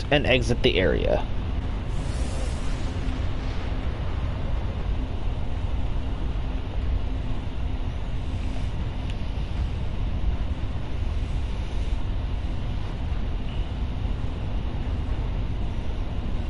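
A spacecraft engine hums low and steady.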